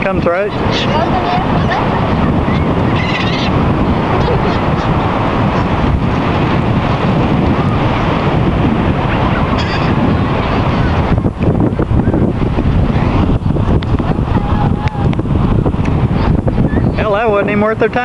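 Wind blusters loudly across the microphone outdoors.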